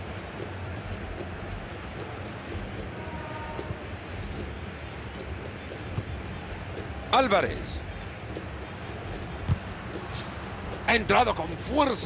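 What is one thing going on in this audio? A large stadium crowd murmurs.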